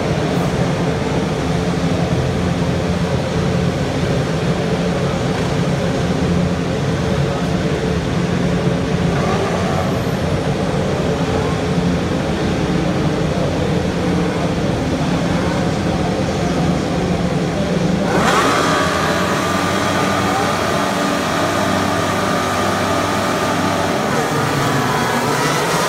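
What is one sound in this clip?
Racing car engines idle with a loud, steady, throbbing rumble outdoors.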